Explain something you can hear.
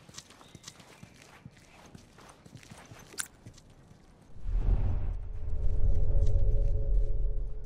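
Soft footsteps shuffle across a hard floor.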